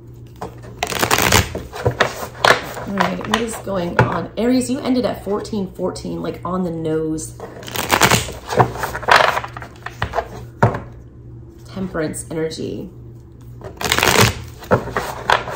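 Playing cards riffle and flutter as they are shuffled.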